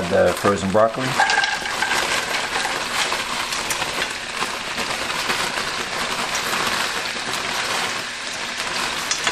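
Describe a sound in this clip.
Frozen vegetables rattle as they tumble into a pan.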